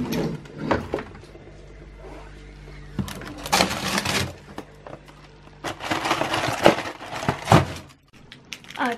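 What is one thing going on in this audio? Plastic packaging rustles and crinkles.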